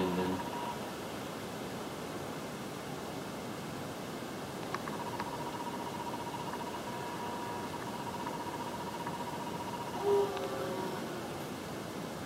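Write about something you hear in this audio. Chiptune video game music plays from a television speaker.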